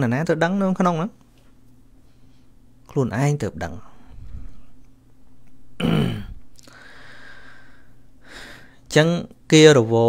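A middle-aged man speaks calmly in short phrases with pauses, close to a microphone.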